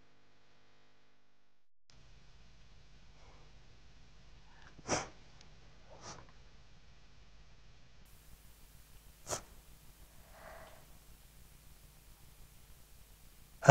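A woman sniffles and sobs quietly.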